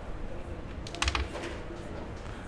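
A carrom striker clicks sharply against wooden pieces on a board.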